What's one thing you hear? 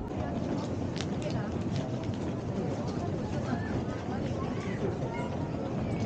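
Suitcase wheels roll across a hard floor.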